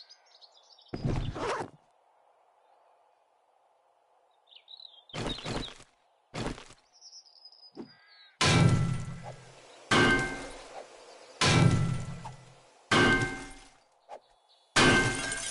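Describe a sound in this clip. A metal tool strikes stone with repeated heavy thuds.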